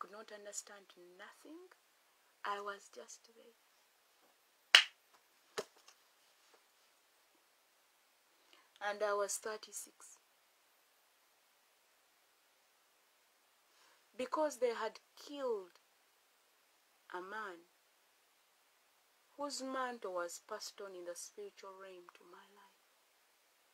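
A woman speaks close up, calmly and with pauses.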